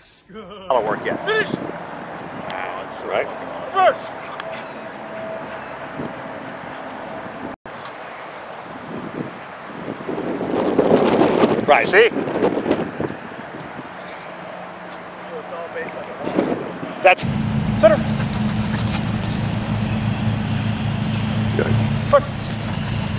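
Dogs bark excitedly close by.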